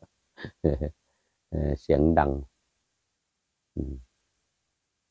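An elderly man speaks calmly and close to the microphone, in short phrases.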